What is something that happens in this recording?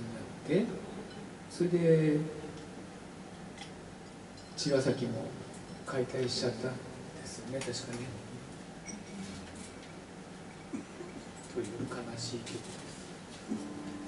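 A young woman talks casually into a microphone.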